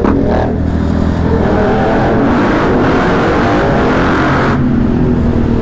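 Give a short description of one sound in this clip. Wind and engine roar echo loudly inside a tunnel.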